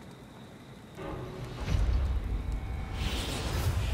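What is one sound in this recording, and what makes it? A deep booming rumble swells up and grows loud.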